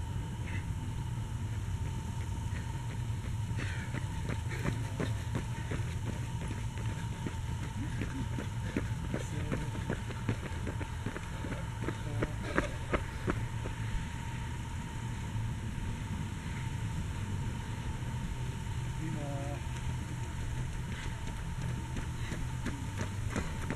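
Footsteps of runners slap on a paved road.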